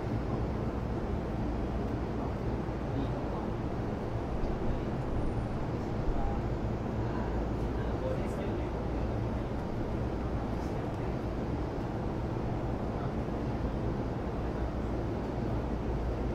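An electric train rumbles steadily as it runs along the tracks.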